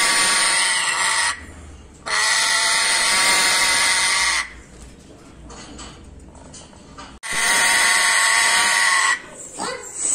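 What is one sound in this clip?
A parrot screeches loudly in long harsh bursts.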